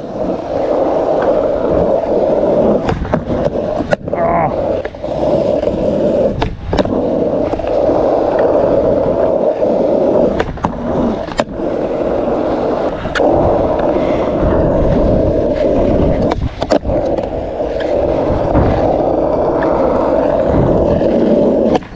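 Skateboard wheels roll with a steady rough rumble on asphalt.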